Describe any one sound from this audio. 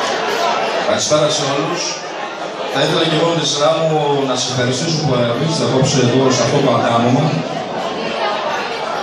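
A man speaks loudly and with animation into a microphone over loudspeakers.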